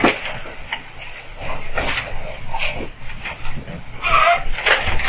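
A man speaks at a distance in a large room with some echo.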